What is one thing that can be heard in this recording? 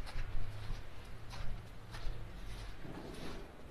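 A van engine hums low as the van drives slowly away.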